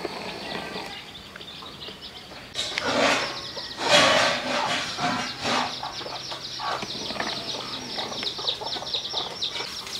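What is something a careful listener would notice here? Chicks peep rapidly and constantly nearby.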